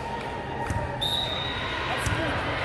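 A referee's whistle blows once, sharp and short.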